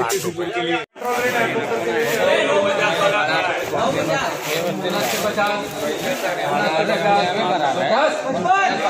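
A crowd of men talk over one another nearby.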